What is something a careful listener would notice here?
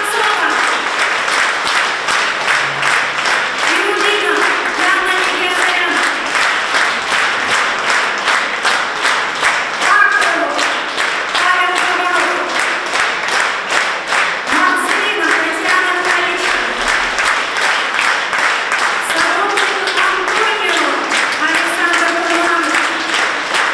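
A group of women sings together in a large echoing hall.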